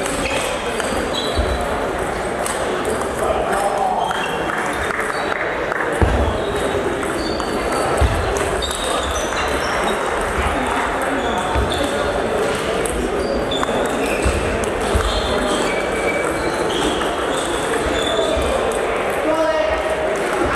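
A table tennis ball clicks back and forth between paddles and the table in an echoing hall.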